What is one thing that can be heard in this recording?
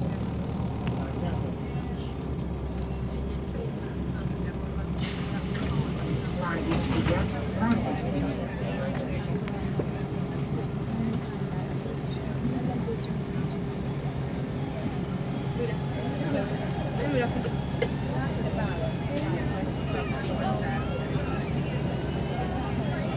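The engine of an articulated city bus drones, heard from inside as the bus drives along.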